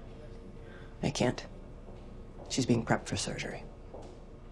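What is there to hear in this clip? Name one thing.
A woman answers calmly.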